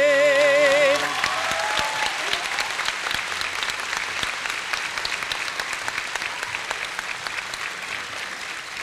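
A large crowd claps and cheers in a large hall.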